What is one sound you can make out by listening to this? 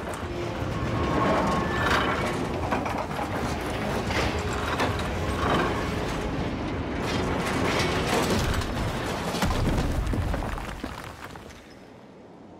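A mine cart rattles and clatters along metal rails.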